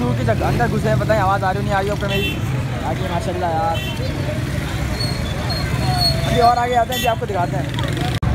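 Young men talk loudly close by.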